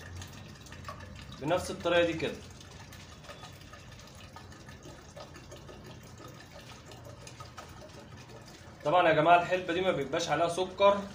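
Liquid gurgles as it is poured out.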